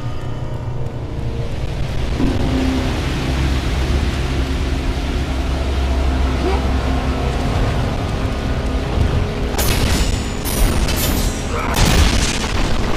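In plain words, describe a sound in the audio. Water rushes and splashes from a waterfall.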